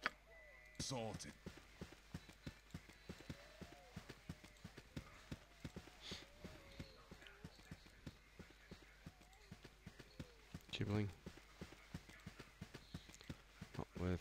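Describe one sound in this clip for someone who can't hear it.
Footsteps tread steadily and quickly on soft ground.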